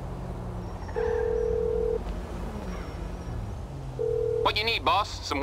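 A phone ringing tone sounds twice.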